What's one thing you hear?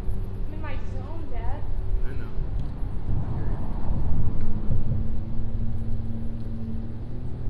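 Small waves lap against a concrete wall.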